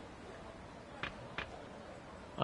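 A game menu blips softly as a selection moves.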